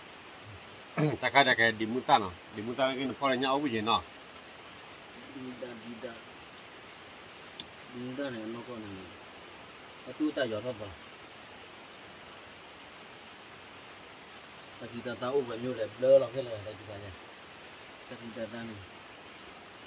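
Young men talk casually close by.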